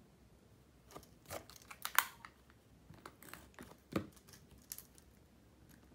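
Calculator keys click as they are pressed.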